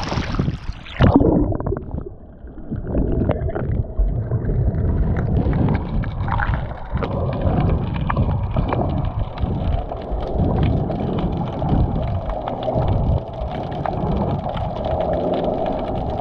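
Muffled underwater rumbling and bubbling fill the sound.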